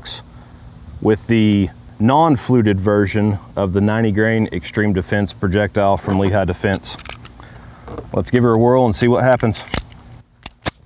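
A man speaks calmly, close by, outdoors.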